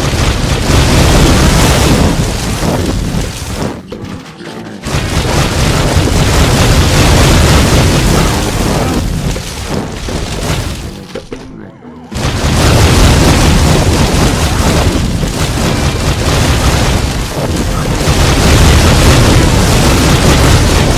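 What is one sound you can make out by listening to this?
Swirling fire whooshes and roars.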